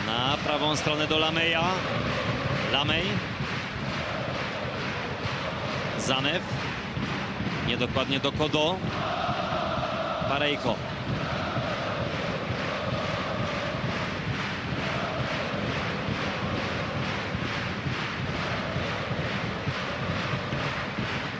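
A large stadium crowd chants and roars throughout.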